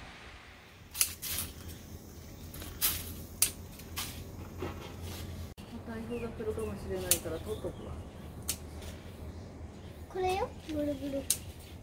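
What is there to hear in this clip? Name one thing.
Garden scissors snip through plant stems.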